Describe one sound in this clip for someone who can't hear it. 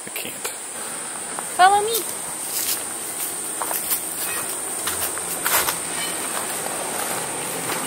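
Footsteps walk across grass outdoors.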